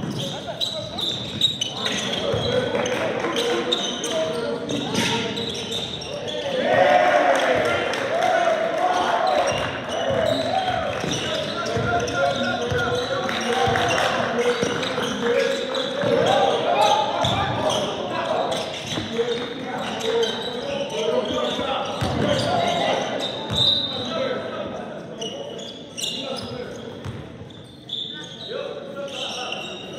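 Spectators shout and cheer from the sidelines.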